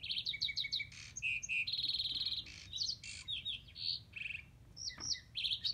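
A wooden block clacks as a finger flips it over.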